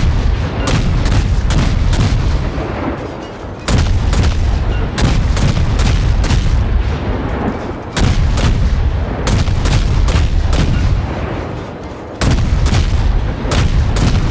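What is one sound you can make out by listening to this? Naval guns fire in rapid booming volleys.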